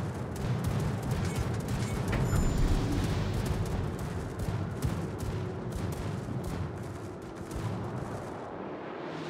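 Heavy guns fire in rapid booming bursts.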